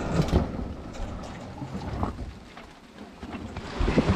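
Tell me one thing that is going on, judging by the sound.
Waves slosh against the hull of a boat.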